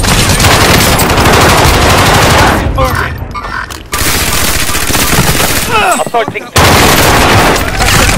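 A light machine gun fires in bursts.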